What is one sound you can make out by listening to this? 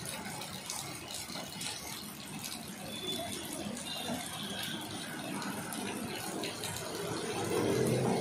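A power drill whirs into a plastic can.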